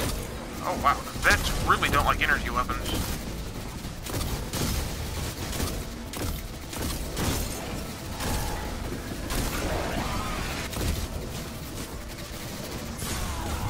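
Gunfire rattles in quick bursts.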